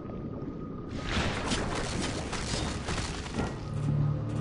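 A shark bites and thrashes at a diver.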